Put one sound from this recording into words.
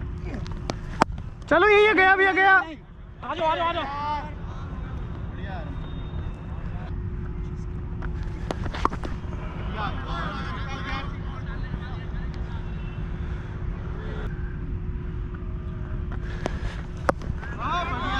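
A cricket bat sharply cracks against a ball.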